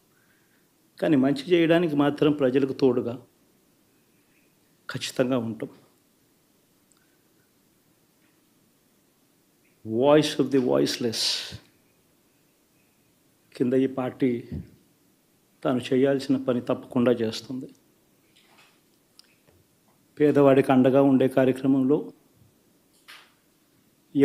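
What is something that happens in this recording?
A man speaks calmly into a microphone in short bursts with pauses.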